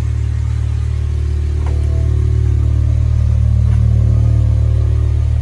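An electric motor hums steadily as a car's soft top folds closed.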